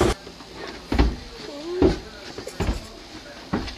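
Footsteps thud down stairs.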